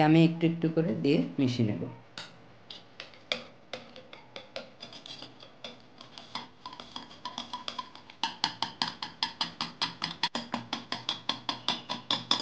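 A wire whisk taps and clicks rapidly against a bowl.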